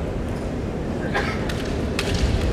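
A fencer lets out a loud, sharp shout in a large echoing hall.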